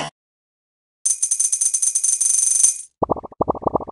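Coins chime in a rapid run as they are collected.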